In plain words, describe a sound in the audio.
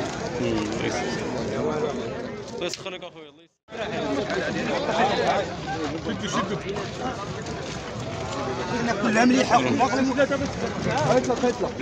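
A crowd of men talk loudly close by.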